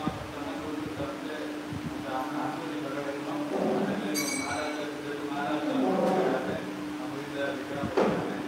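A man chants steadily into a microphone.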